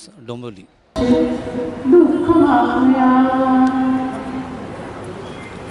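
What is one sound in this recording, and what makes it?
A large crowd of children chants in unison outdoors.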